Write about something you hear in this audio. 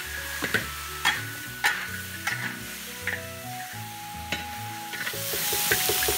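A metal spatula scrapes and stirs in a wok.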